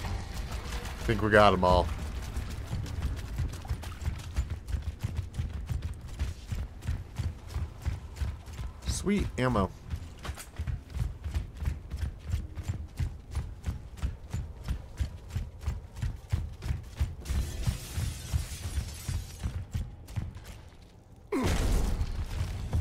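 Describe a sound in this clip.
Heavy armoured boots thud steadily on stone.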